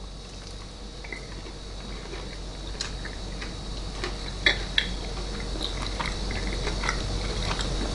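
A man chews food with his mouth closed.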